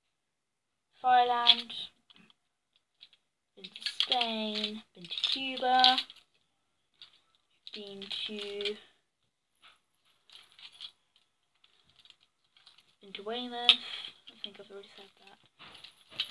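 A young girl talks calmly and close by, in short bursts.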